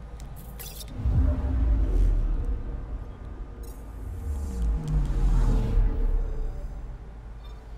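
A deep, rumbling whoosh swells up and then fades away.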